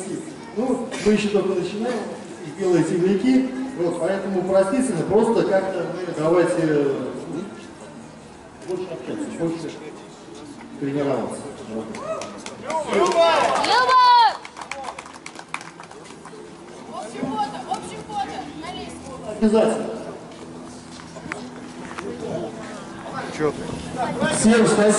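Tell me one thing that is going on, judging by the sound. A man speaks outdoors, heard from a distance.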